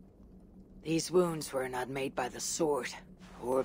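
A young woman speaks calmly and quietly.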